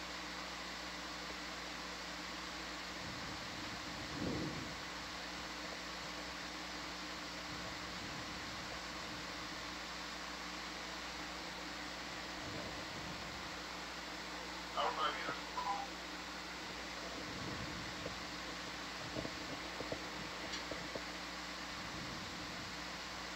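An underwater vehicle's thrusters hum steadily.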